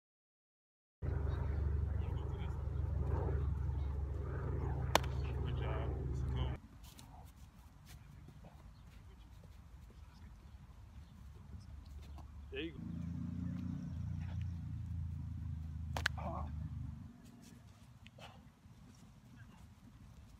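Footsteps scuff quickly on artificial turf.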